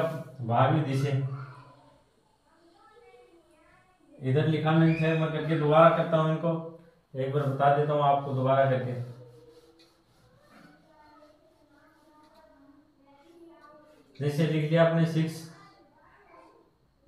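A young man speaks in bursts, explaining calmly and close by.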